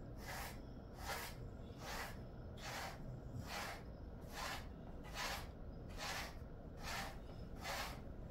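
A brush sweeps rhythmically through a dog's fur.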